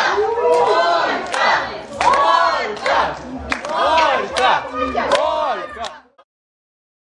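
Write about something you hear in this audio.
A crowd of adults cheers and shouts excitedly outdoors.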